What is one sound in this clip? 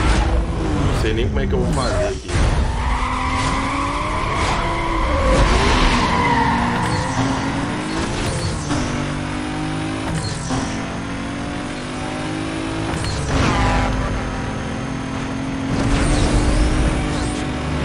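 A racing car engine revs hard and shifts gears.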